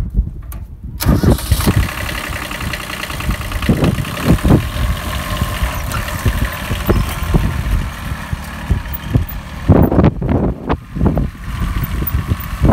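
A small tractor engine runs steadily close by.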